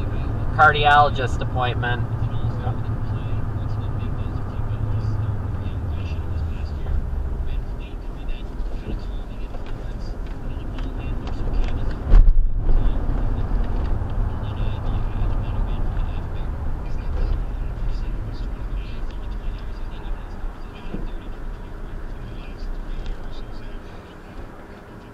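Tyres roll on pavement.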